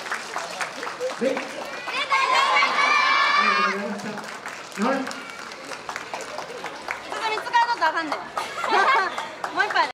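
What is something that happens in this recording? A group of young dancers shouts in unison outdoors.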